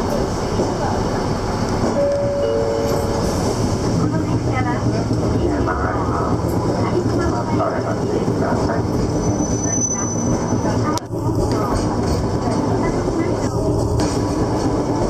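A vehicle's engine rumbles steadily from inside while driving.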